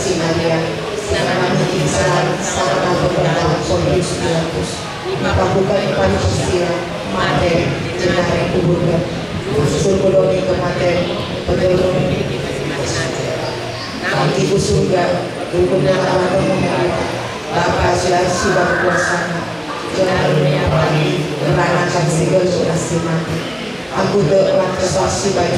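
A middle-aged woman speaks steadily into a microphone, heard through a loudspeaker.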